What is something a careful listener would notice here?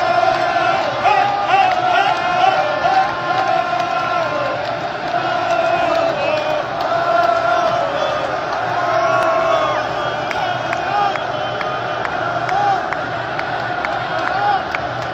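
A large crowd sings and chants loudly in a big echoing stadium.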